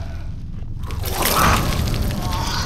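A loud crunching squelch bursts out.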